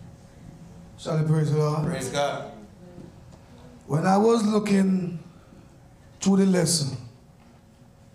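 A man speaks through a microphone in short, emphatic bursts, heard over loudspeakers in an echoing room.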